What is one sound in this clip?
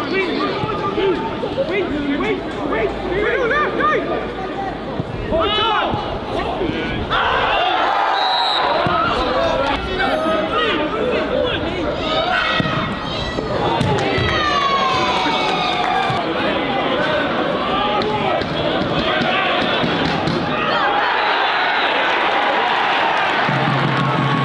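A crowd cheers and shouts in a large outdoor stadium.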